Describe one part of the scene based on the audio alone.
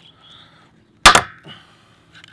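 A rivet gun snaps a rivet with a sharp metallic crack.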